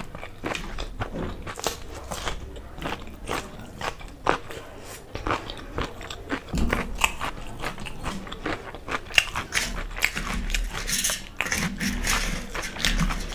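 A young woman chews food loudly and wetly close to a microphone.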